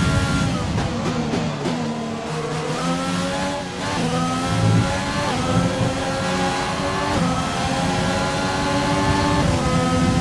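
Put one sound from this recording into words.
A racing car engine whines loudly, its pitch dropping on downshifts and rising as it speeds up.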